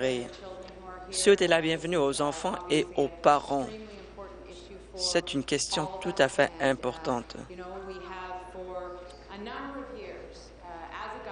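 A middle-aged woman speaks firmly through a microphone in a large hall.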